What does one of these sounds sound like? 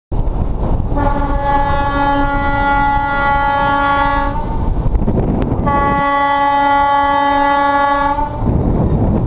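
Wind rushes and buffets loudly past.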